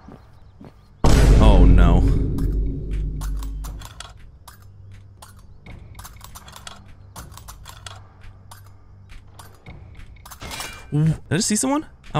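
A lockpick clicks against the pins of a pin tumbler lock.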